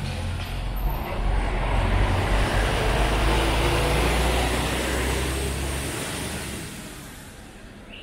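A bus drives past close by with a loud engine rumble.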